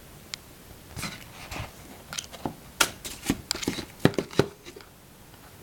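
Stiff paper rustles and crinkles as a sheet is lifted and moved by hand.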